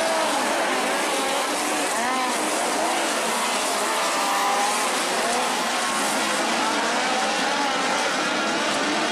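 Race car engines roar and whine around a dirt track.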